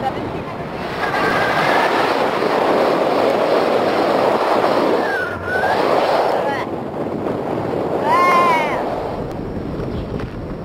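Wind rushes past a paraglider in flight.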